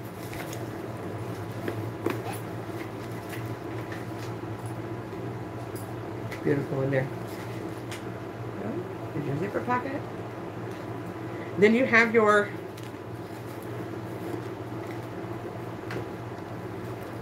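Fabric and zippers rustle and click as a handbag is handled.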